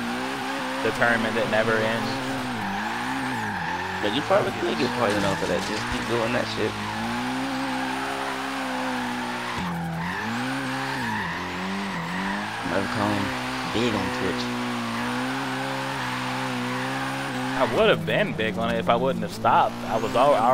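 A car engine drones and revs up and down steadily.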